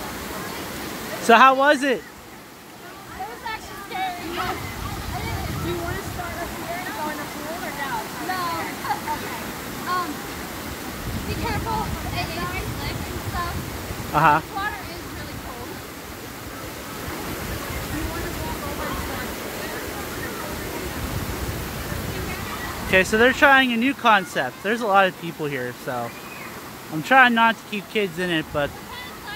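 Water rushes steadily over rocks.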